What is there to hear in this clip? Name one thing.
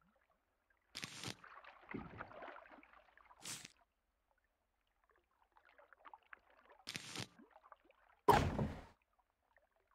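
Short clicks and pops sound as items are picked from a menu.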